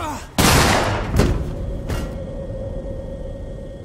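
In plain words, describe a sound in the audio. A body thuds heavily onto a metal floor.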